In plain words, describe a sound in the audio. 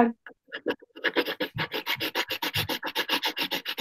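A pen scratches quickly on paper.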